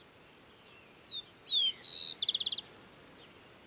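A small bird sings loud, sweet whistles and trills close by.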